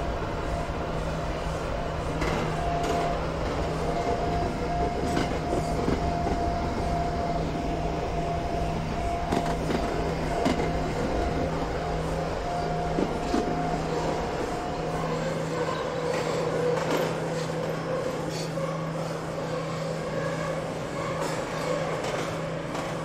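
An electric motor hums steadily inside a train cab.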